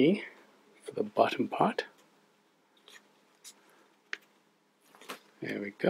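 A sticker peels off a paper sheet with soft crinkling.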